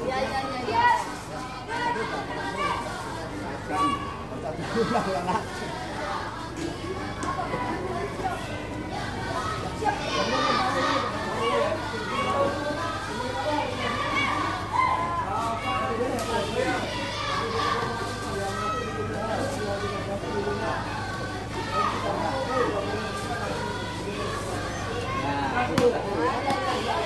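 A crowd of children chatter and call out nearby, outdoors.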